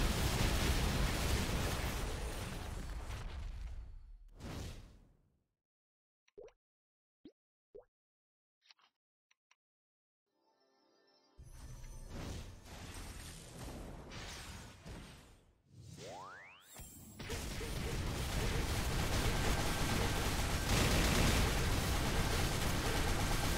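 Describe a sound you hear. Game attack effects crash and boom rapidly.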